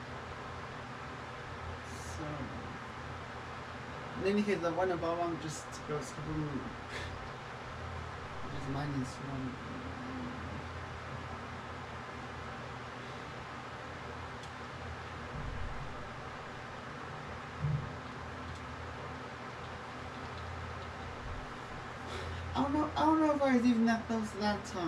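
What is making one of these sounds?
Game music plays quietly from a television.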